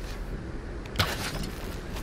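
A bowstring snaps as an arrow is loosed.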